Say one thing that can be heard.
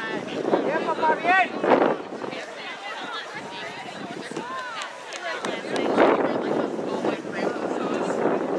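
Young players call out to each other across an open field.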